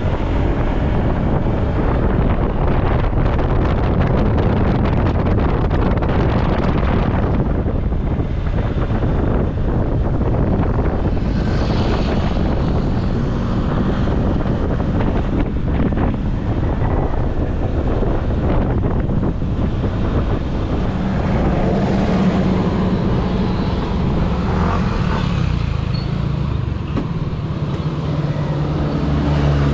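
Wind rushes and buffets loudly past the rider.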